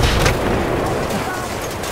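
A nearby explosion booms and rumbles.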